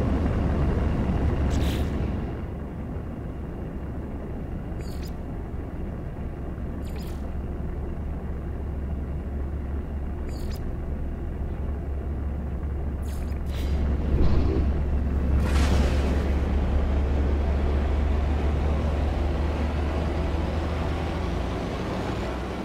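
A spacecraft engine roars steadily.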